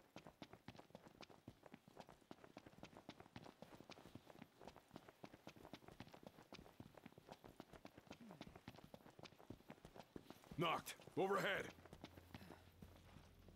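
Quick footsteps run over grass and gravel.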